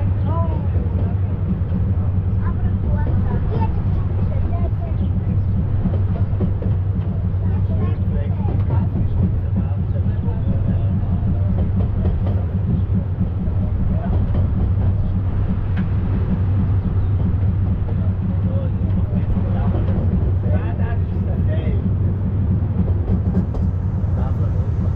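A small open train rumbles steadily along its track.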